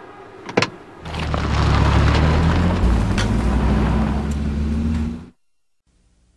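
A vehicle engine rumbles and revs up.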